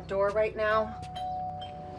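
A woman speaks urgently and close by.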